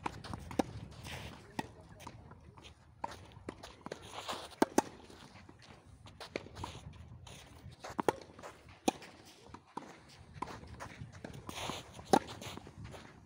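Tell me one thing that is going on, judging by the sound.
Tennis balls are struck by rackets with sharp pops.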